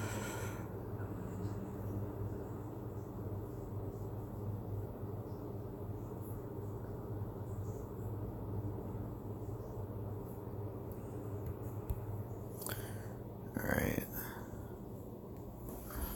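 Soft background music plays throughout.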